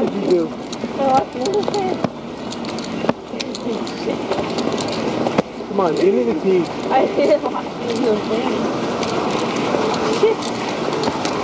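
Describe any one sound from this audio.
Sneakers step on paving stones.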